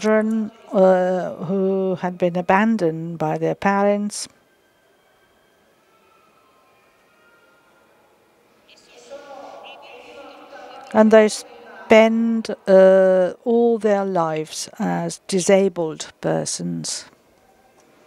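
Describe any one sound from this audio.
A woman sings with a clear voice.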